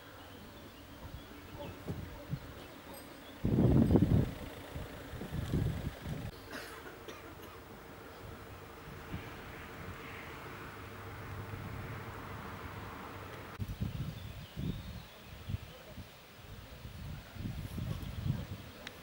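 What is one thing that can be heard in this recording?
Wind gusts into the microphone outdoors.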